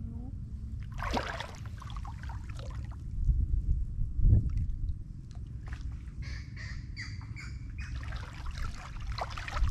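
Water splashes and sloshes close by.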